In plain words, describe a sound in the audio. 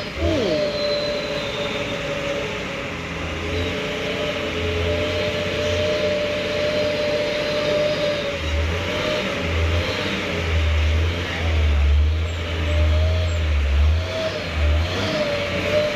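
A heavy truck engine rumbles and strains as the truck crawls slowly over rough ground.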